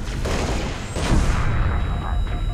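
A plasma weapon fires with a sizzling burst.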